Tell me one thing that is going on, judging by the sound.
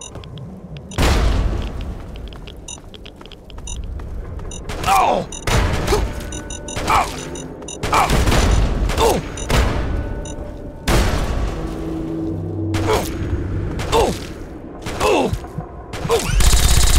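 Loud explosions boom one after another.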